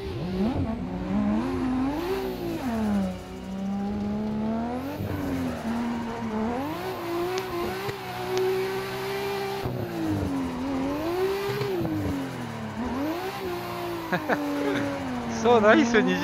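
A racing car engine revs high and low through gear changes.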